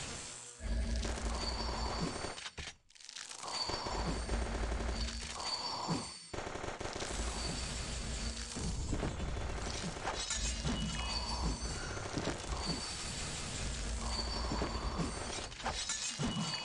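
Fast battle sound effects of blasts and hits ring out.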